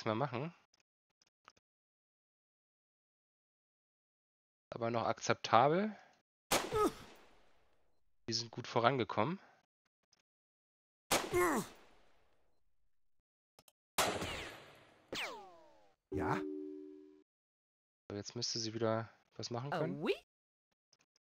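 A man speaks with animation close to a microphone, in short bursts.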